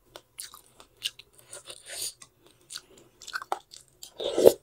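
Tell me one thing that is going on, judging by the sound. A metal spoon and fork clink against a glass bowl.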